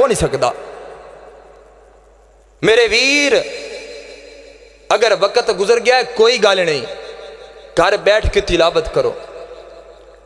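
A young man chants loudly and passionately into a microphone, with phrases echoing through loudspeakers.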